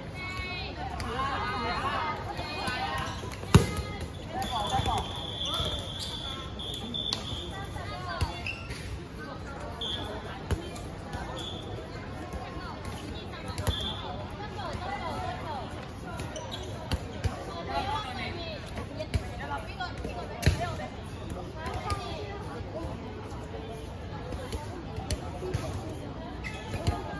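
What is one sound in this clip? Young girls shout and call out during a basketball game outdoors.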